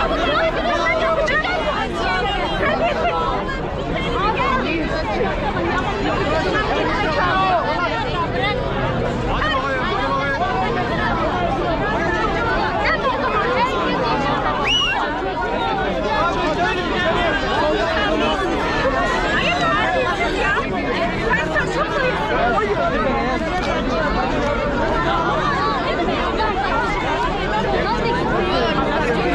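A large crowd of men and women talks and shouts all at once outdoors.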